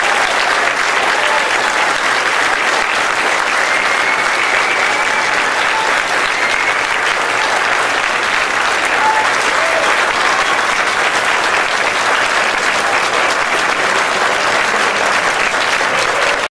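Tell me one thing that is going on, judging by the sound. An audience applauds loudly and steadily in a large hall.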